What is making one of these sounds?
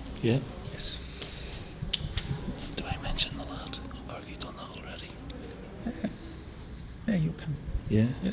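A middle-aged man speaks quietly and casually into a microphone, close by.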